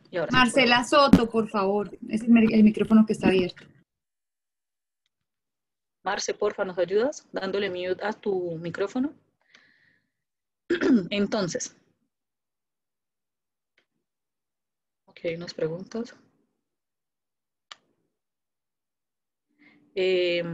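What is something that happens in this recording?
A young woman speaks calmly over an online call, in bursts with pauses.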